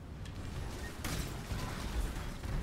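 Magic blasts burst and crackle loudly.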